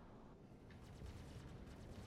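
Laser guns fire in quick bursts.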